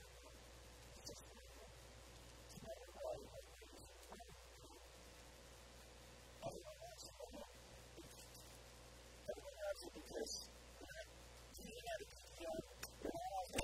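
A man speaks calmly and close through a microphone, with pauses.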